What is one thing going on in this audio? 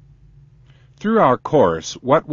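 An older man speaks calmly into a close microphone.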